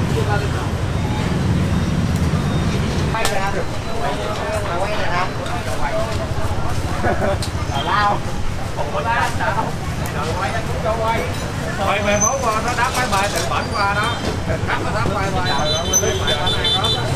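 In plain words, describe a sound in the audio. Gas burners roar steadily under a row of pots.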